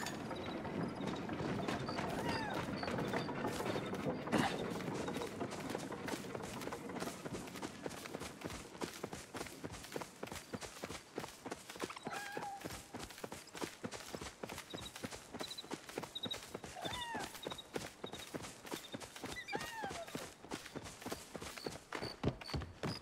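Quick footsteps run across soft grass.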